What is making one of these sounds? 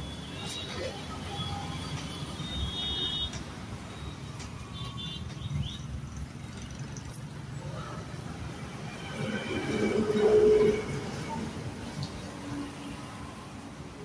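A gas welding torch hisses steadily.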